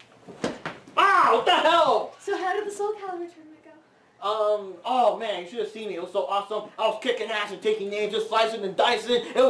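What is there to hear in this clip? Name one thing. A young woman talks excitedly and loudly nearby.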